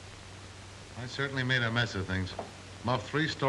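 A middle-aged man speaks from close by, sounding weary.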